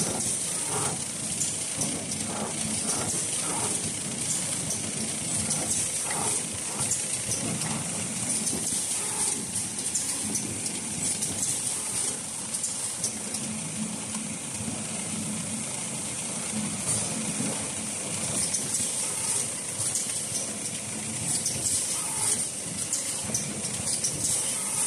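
Machine parts click and rattle rapidly.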